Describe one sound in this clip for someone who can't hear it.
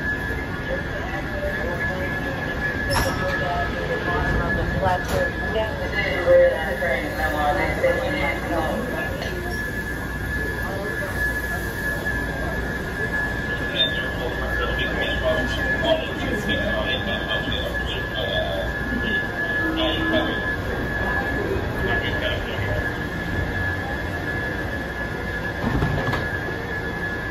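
A crowd murmurs on an outdoor platform.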